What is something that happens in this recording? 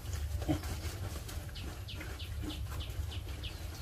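Piglets chew leafy greens.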